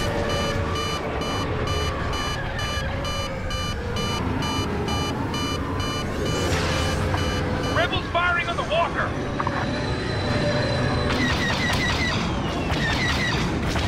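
A starfighter's engine roars steadily.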